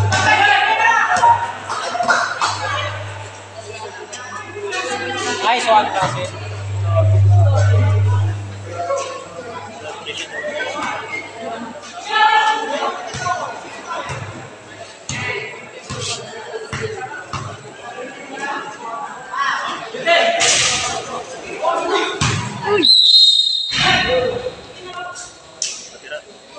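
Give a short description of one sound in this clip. A crowd of young people chatters and shouts outdoors.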